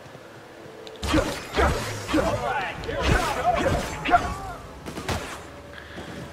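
A blade slashes and strikes with heavy thuds.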